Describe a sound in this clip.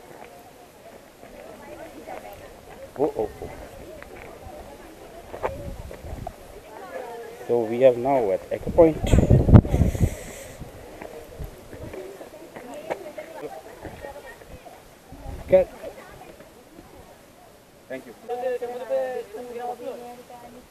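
Men and women talk in a crowd.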